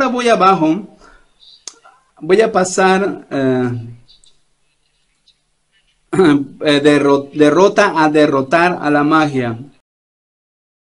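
An older man speaks steadily and earnestly through a microphone.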